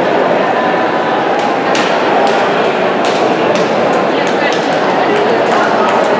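A crowd of people chatters in a large echoing indoor pool hall.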